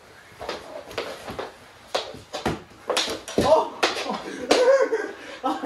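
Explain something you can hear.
Hockey sticks clack and scrape on a wooden floor.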